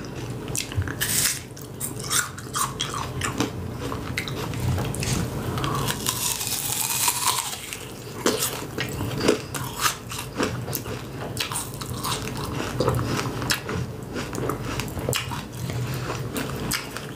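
Food crunches and crackles as a young woman bites and chews close to a microphone.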